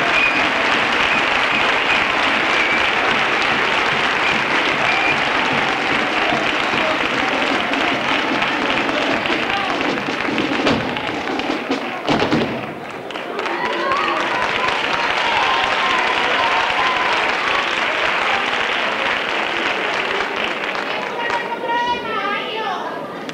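A group of children's voices sings loudly in a large hall.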